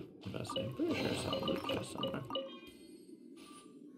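A treasure chest opens with a bright magical chime.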